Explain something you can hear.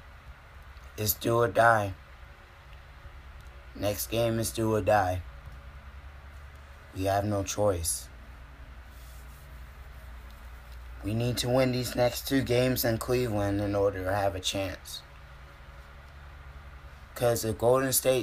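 A young man talks casually and close by, in short bursts with pauses.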